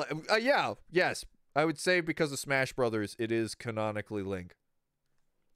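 A man talks with animation, close into a microphone.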